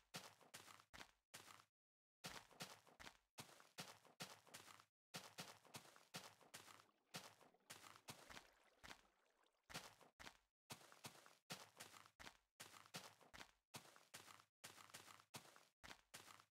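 Footsteps crunch over grass.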